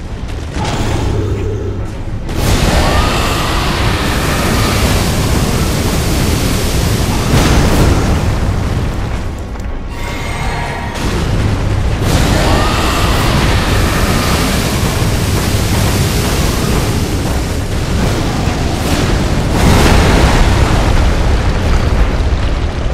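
Heavy swords clash and slash.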